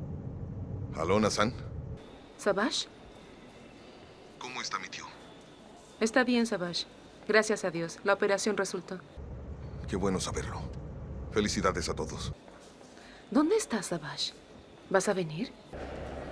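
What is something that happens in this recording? A woman speaks anxiously and close by.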